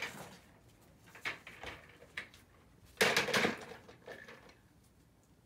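An office chair rolls and knocks on a hard floor.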